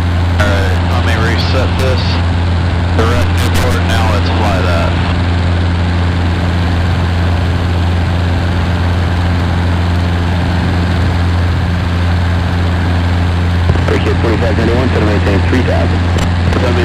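A small plane's engine drones loudly and steadily.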